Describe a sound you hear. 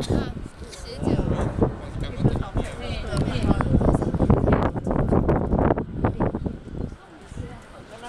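Strong wind gusts roar and buffet outdoors.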